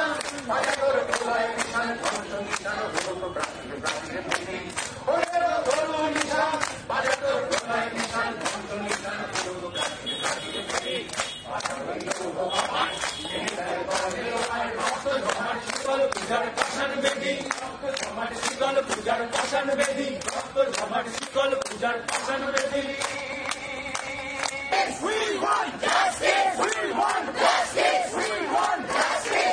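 A crowd claps along in a steady rhythm outdoors.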